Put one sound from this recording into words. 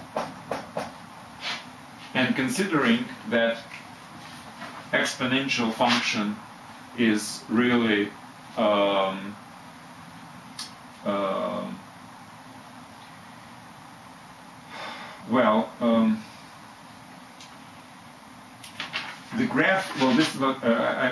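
A middle-aged man speaks calmly and clearly up close, as if explaining.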